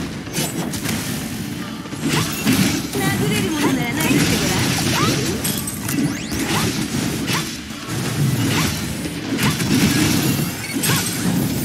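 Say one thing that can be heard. Explosions boom and crackle.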